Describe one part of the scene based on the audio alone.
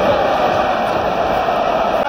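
A woman speaks close by with excitement.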